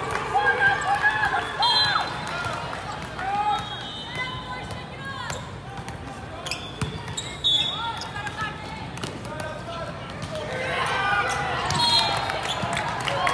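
Young people shout and cheer in a large echoing hall.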